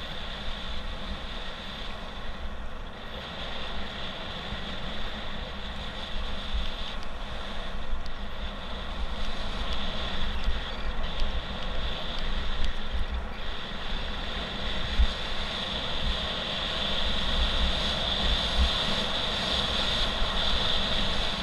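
Tyres crunch and rattle steadily over a gravel track.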